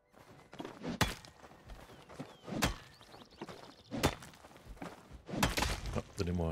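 A pickaxe strikes stone in sharp, repeated knocks.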